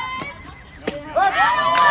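A ball smacks into a catcher's glove.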